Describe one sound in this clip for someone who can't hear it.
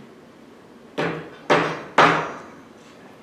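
A hammer knocks sharply on wood a few times.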